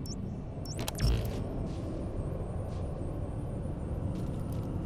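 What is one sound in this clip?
Wind roars and gusts outdoors.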